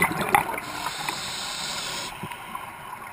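Air hisses through a diver's regulator close by, heard underwater.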